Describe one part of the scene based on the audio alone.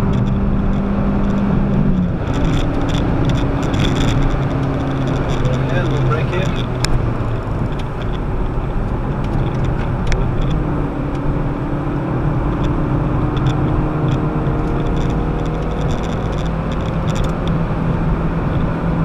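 Tyres rumble and road noise fills the car interior.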